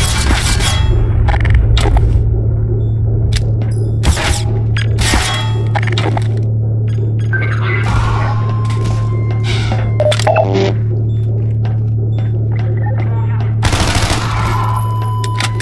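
Gunshots crack in quick bursts, echoing off hard walls.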